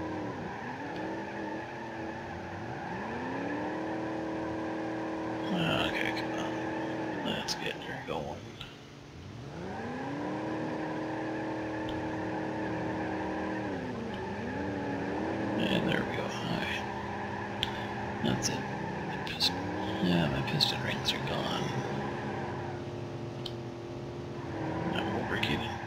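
A car engine revs hard in reverse, its pitch repeatedly rising and dropping.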